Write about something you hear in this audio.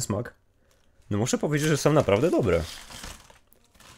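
A crisp bag rustles and crinkles.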